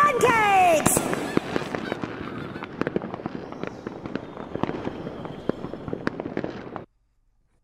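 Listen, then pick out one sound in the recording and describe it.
Small fireworks crackle and pop in quick bursts.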